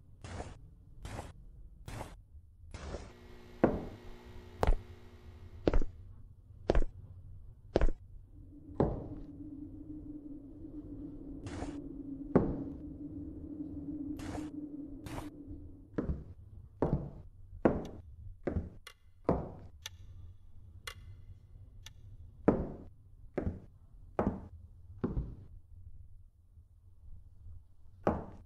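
Footsteps thud slowly and evenly on a wooden floor indoors.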